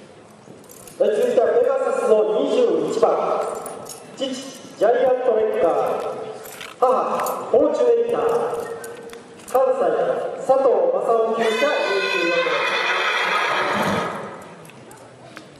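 A man talks loudly in a large echoing hall.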